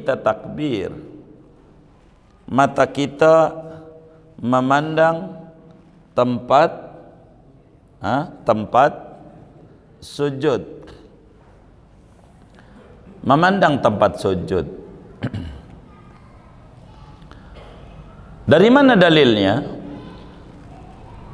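A man speaks slowly and calmly into a microphone, in a room with a slight echo.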